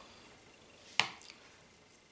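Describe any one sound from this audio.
A metal spoon knocks once against a plastic tub.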